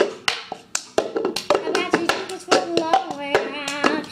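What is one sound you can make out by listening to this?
A young girl sings nearby.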